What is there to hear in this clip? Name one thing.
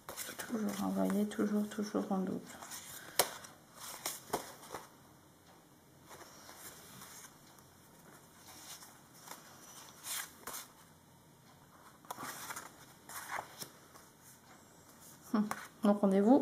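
Stiff paper cards rustle and slide against each other.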